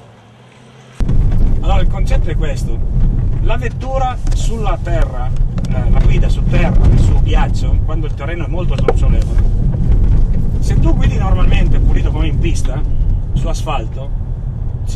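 A middle-aged man talks calmly inside a moving car.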